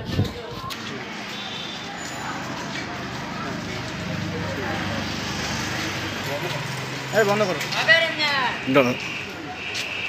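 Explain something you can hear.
A man talks on a phone.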